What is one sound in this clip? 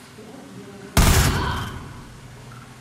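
A rifle fires a single loud shot that echoes briefly.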